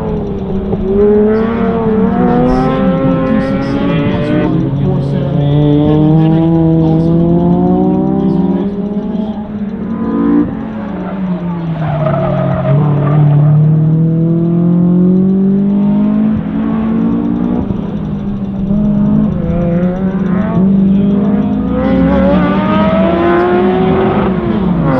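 A car engine revs hard at a distance, its pitch repeatedly rising and falling.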